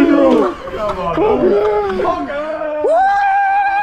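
Young men shout and cheer excitedly close by.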